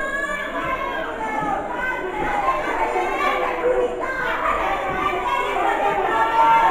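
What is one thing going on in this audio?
A crowd of men, women and children shouts and cheers nearby in an echoing hall.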